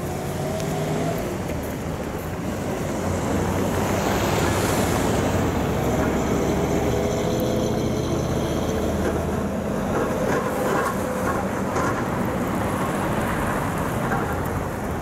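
Cars drive along a snowy street nearby, their engines rumbling.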